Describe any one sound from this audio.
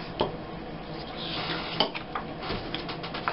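A pen squeaks as it writes on paper.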